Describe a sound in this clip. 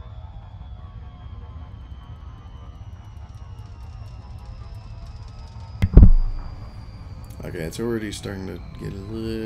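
A spaceship engine hums low and steady.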